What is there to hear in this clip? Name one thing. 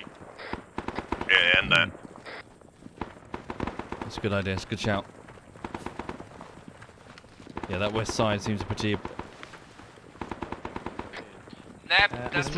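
Footsteps thud quickly over dirt and grass.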